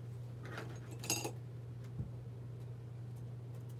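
A laptop is opened with a soft clunk.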